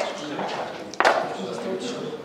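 Dice tumble and clatter across a board.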